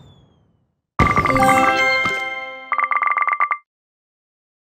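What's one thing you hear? A cheerful game jingle plays for a finished level.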